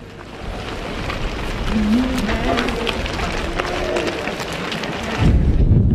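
Sheep bleat nearby.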